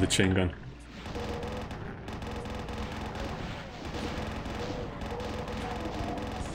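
A machine gun fires in rapid, continuous bursts.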